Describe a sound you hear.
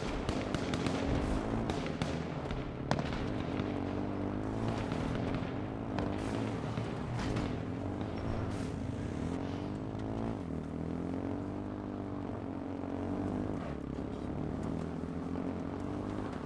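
A motorbike engine drones and revs up and down.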